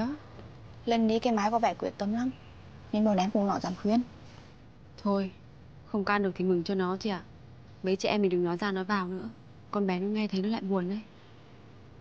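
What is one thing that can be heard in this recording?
Young women talk with animation nearby.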